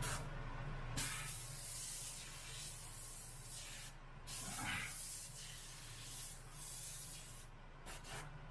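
An airbrush sprays paint with a steady, soft hiss, in bursts.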